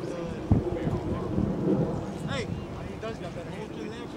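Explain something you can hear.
Young men talk quietly at a distance, outdoors.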